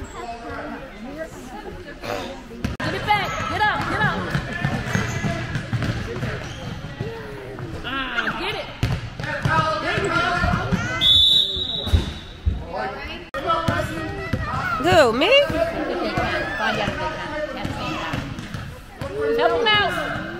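Adults and children shout and cheer in a large echoing hall.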